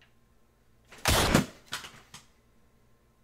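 A person thumps and rustles while dropping back onto a seat nearby.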